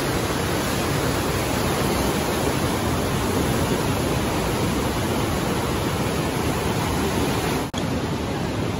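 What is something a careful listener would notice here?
River rapids roar and rush loudly nearby.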